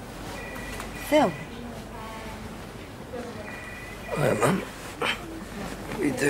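A man speaks in a weak, tired voice nearby.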